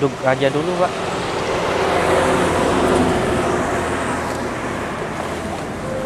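A heavy truck rumbles past on the road.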